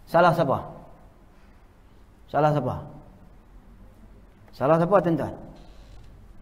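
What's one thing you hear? A young man speaks slowly in short phrases through a close microphone, with long pauses.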